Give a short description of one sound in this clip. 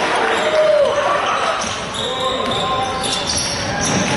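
A basketball thumps as it is dribbled.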